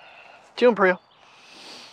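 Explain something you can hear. A dog sniffs at the grass close by.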